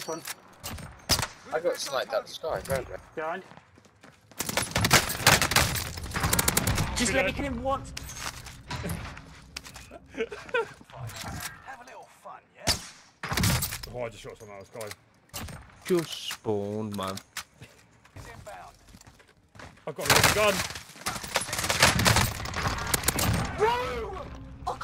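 Gunshots crack sharply again and again.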